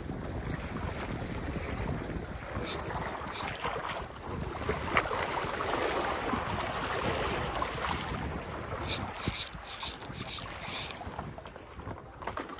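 Sea water laps and washes gently.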